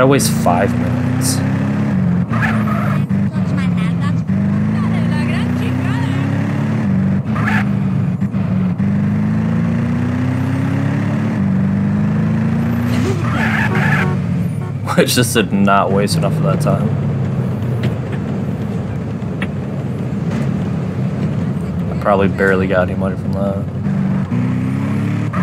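A car engine hums and revs up and down repeatedly.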